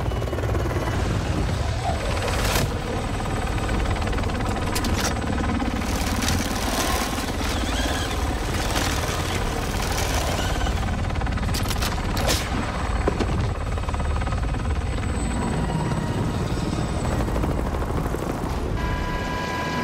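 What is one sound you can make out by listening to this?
A helicopter's rotor thuds loudly and steadily overhead.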